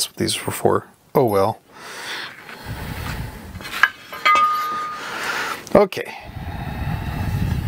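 Metal parts clink and knock against a metal plate.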